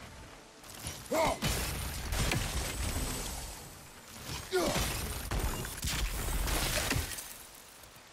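A magical blast whooshes and crackles.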